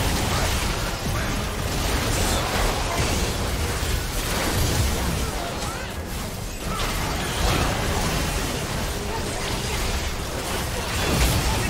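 Fantasy battle sound effects blast and crackle rapidly.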